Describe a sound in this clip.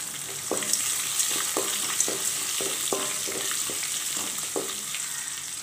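A wooden spatula scrapes against a metal pan.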